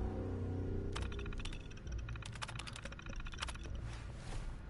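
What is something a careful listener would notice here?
Computer terminal beeps chirp rapidly as text types out.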